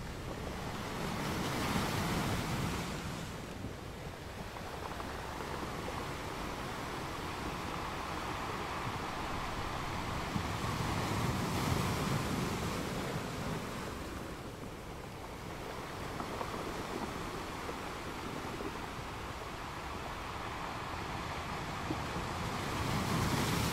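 Foamy water washes and hisses over rocks.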